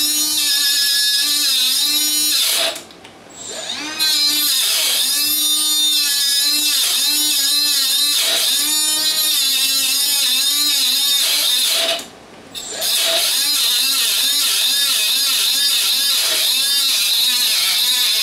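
An angle grinder screeches loudly as it cuts metal, stopping briefly twice.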